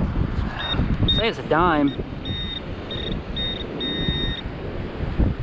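A handheld metal detector pinpointer beeps in short bursts.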